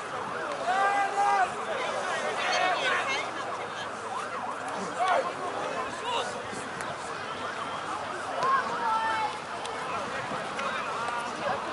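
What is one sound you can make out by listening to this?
Spectators cheer and shout from the sideline.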